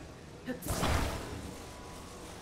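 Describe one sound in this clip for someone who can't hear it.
A glider launches with a brief rushing whoosh of air.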